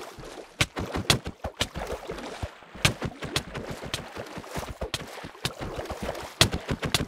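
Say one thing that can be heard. Sharp hits land in quick succession during a fight.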